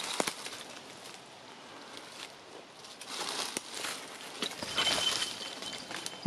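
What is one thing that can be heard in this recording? A dog rustles through dry leaves underfoot.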